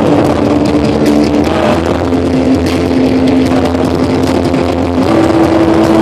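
An electric guitar is strummed.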